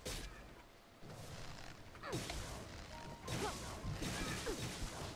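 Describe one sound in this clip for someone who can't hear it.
Weapon blows strike repeatedly in a fight.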